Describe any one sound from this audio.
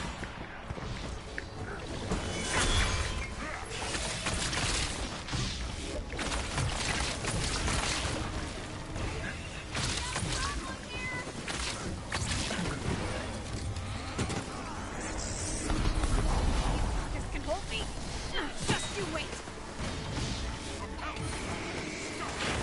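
Magic energy blasts whoosh and hum.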